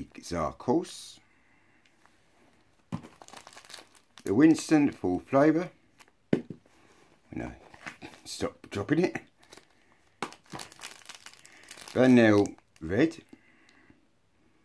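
Packaging crinkles in a man's hands.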